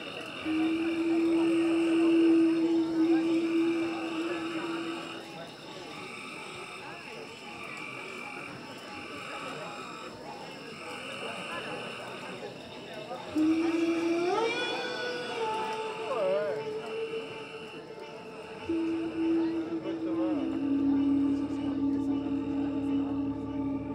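Electronic synthesizers play droning tones and pulsing patterns through loudspeakers.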